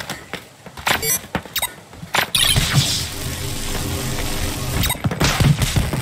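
Blocks crackle and crumble as they disintegrate into debris.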